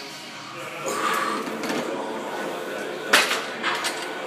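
Weight plates of a cable machine clank.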